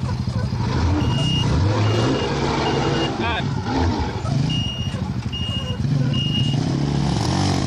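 A heavy truck engine roars loudly as the truck labours up a dirt slope nearby.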